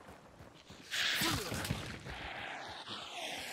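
Flames whoosh and crackle.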